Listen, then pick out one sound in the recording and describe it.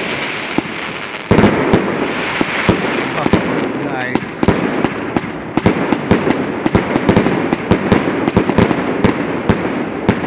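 Fireworks crackle and bang in rapid bursts close by.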